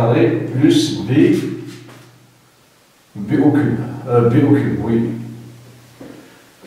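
A man speaks calmly, as if explaining.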